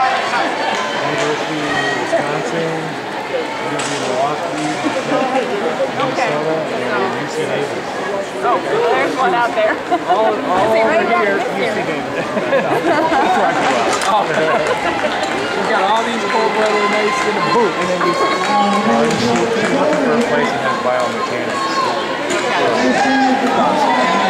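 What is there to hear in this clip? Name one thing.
A crowd of spectators cheers and shouts in an echoing indoor hall.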